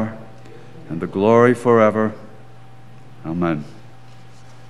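An elderly man speaks slowly through a microphone in a large echoing room.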